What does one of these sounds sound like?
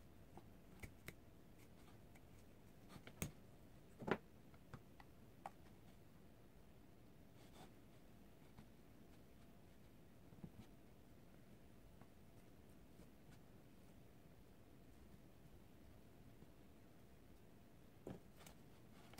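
A plastic comb clicks against a hard surface.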